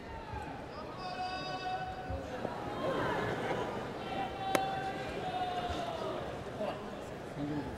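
A man gives instructions in a calm, firm voice close by.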